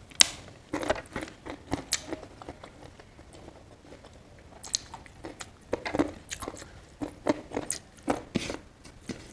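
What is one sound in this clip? A woman chews food wetly close up.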